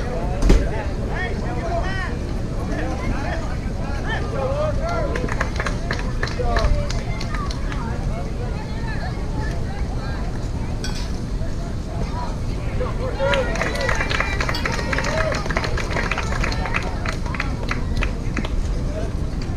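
A crowd of spectators cheers and calls out nearby outdoors.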